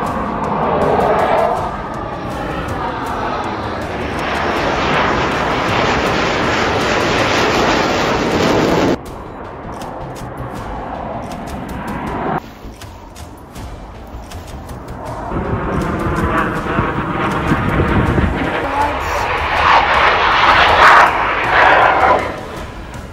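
A fighter jet roars low overhead.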